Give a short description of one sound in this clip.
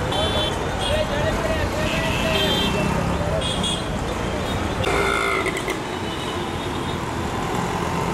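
Busy street traffic rumbles steadily with many small engines outdoors.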